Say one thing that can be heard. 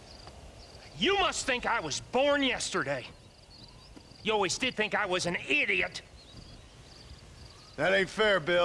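A man shouts angrily from a distance.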